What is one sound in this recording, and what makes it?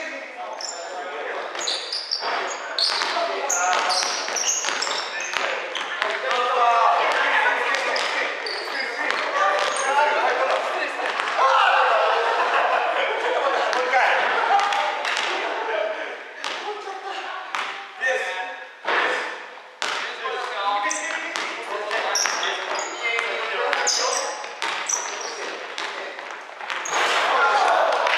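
Young people shout and call out to each other, echoing in a large hall.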